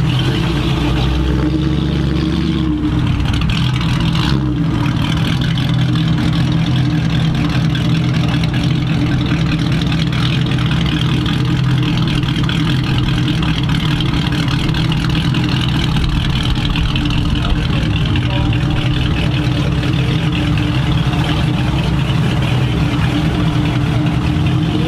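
An old pickup truck's engine rumbles steadily as it drives slowly past.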